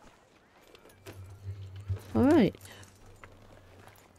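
Horse hooves clop on soft dirt.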